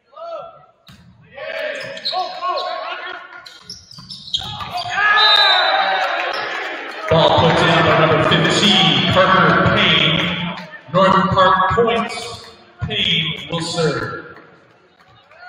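Young men shout and cheer on the court, echoing loudly.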